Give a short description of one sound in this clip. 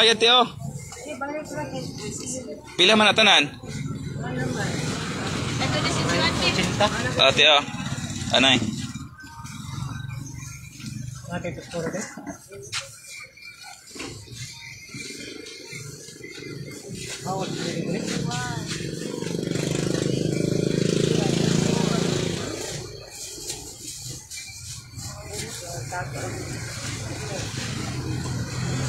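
A woman talks nearby in a lively voice.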